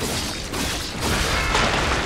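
A magical whoosh swirls and hisses.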